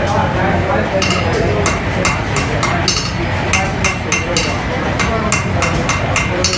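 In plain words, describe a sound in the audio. A hammer strikes metal in quick, ringing blows.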